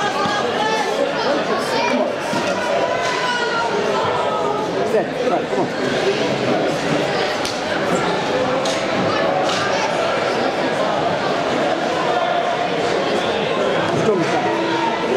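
Ice hockey sticks clack against a puck.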